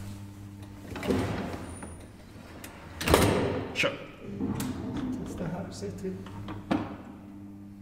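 Metal rattles and clanks as an elevator moves.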